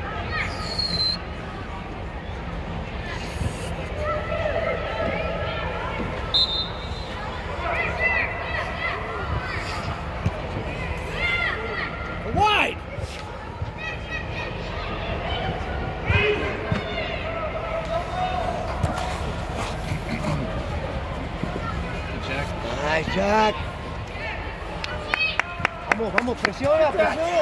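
Young players shout to each other in a large echoing dome.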